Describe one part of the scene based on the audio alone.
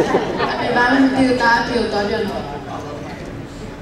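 A young man talks into a microphone close by.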